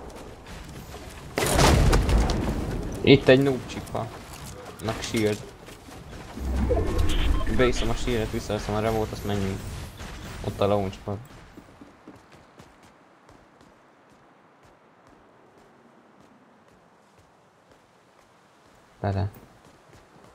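Footsteps patter quickly across wooden planks.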